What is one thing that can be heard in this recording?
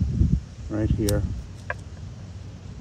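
Pruning shears snip a twig.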